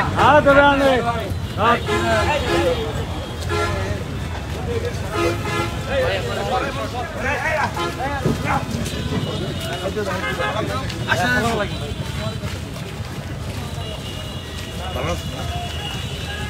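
Several men talk loudly over one another close by, outdoors.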